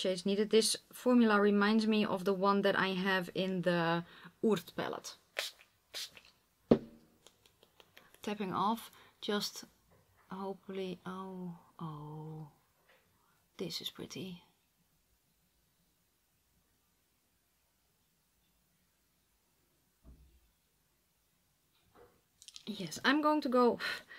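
A woman talks calmly and closely into a microphone.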